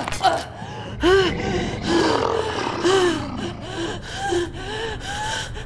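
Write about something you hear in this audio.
A young woman gasps for breath close by.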